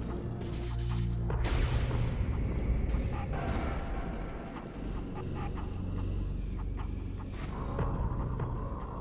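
A sharp electric whoosh bursts out and fades.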